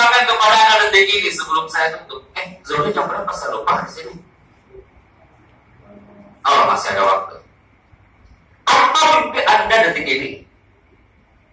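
A man speaks through a microphone and loudspeakers, in bursts with pauses.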